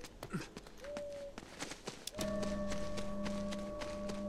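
Footsteps tread over the ground.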